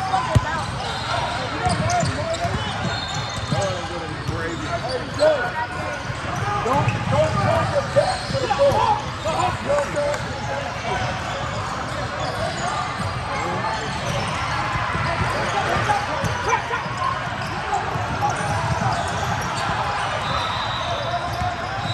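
Many young people's voices chatter and call out in the echoing hall.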